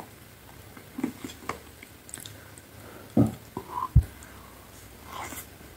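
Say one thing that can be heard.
A woman chews and bites into food with soft wet mouth sounds, close to a microphone.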